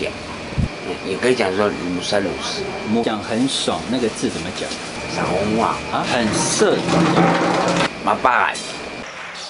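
An elderly man talks loudly and with animation.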